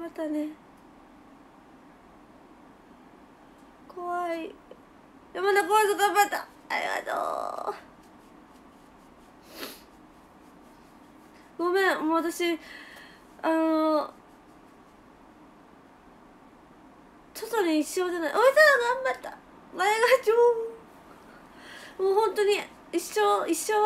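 A young woman speaks close to a microphone in bursts, with animation.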